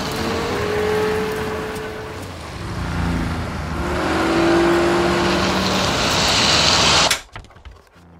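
Tyres screech and spin on loose dirt.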